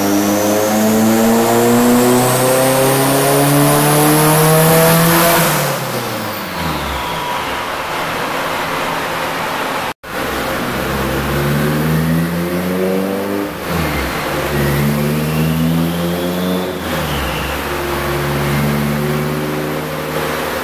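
A car engine roars loudly at high revs, rising and then dropping back.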